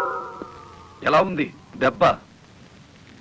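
A man speaks firmly.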